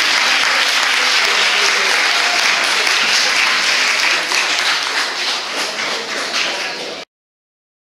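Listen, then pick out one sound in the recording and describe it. A crowd of young people claps and cheers loudly in an echoing room.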